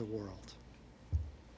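An elderly man speaks briefly into a microphone.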